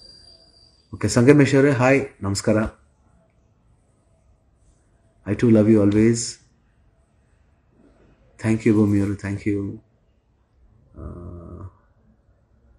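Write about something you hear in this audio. A middle-aged man speaks calmly and close, in short bursts with pauses.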